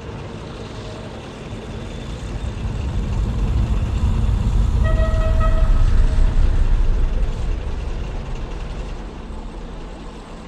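A small train rumbles along its tracks.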